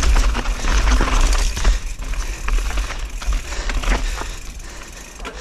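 Wind rumbles hard against a microphone outdoors.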